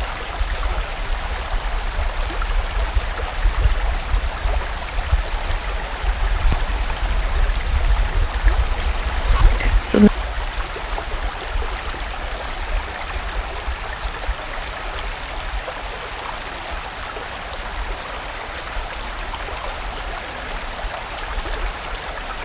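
A fast stream rushes and splashes over rocks.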